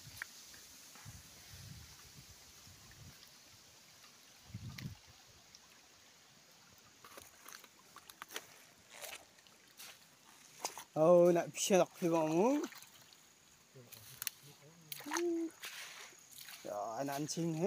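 Shallow water trickles gently over stones.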